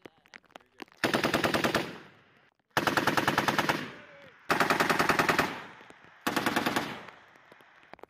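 A machine gun fires loud rapid bursts that echo across open hills.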